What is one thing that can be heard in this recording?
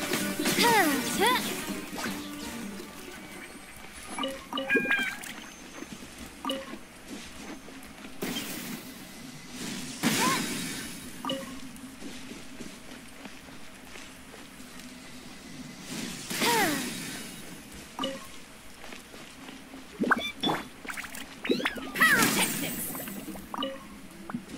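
Video game sound effects chime and whoosh.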